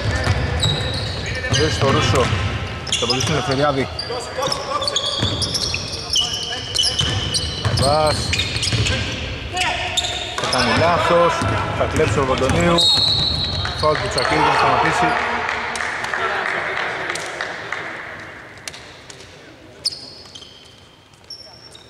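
Sneakers squeak on a hardwood court in an echoing hall.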